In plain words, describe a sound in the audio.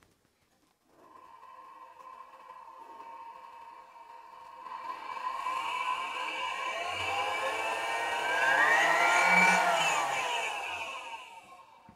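A loudspeaker plays music that grows louder and then fades slightly.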